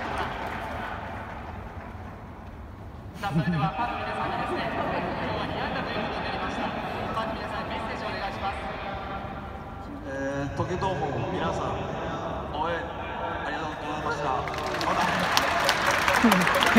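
A crowd of spectators murmurs in a large echoing dome.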